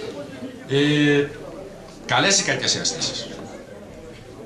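A man speaks out loudly in an echoing hall.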